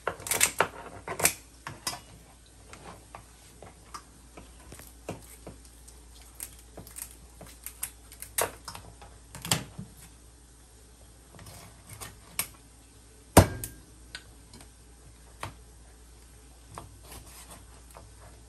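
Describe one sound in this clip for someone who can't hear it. Kitchen shears snip through fish bones with sharp crunching clicks.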